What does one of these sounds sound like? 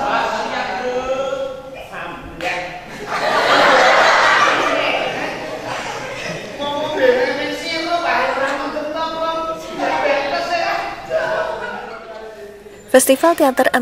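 A young woman speaks with animation on a stage.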